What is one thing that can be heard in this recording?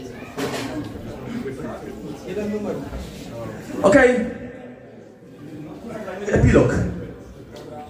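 A rock band plays loudly on electric guitars, bass and drums.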